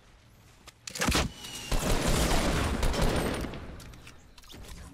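Gunfire and an explosion burst in a video game.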